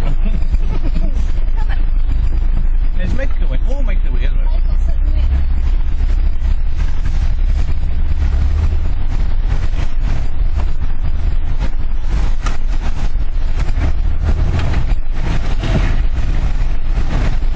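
Tyres splash and bump through muddy ruts.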